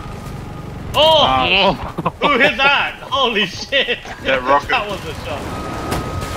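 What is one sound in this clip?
A heavy cannon fires rapid loud bursts.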